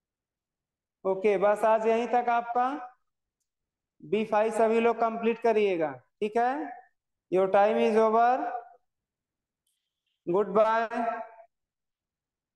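A man speaks clearly into a close microphone, in short bursts with pauses, as on an online call.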